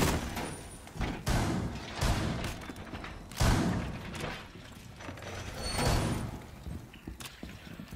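Footsteps thud heavily on a hard floor.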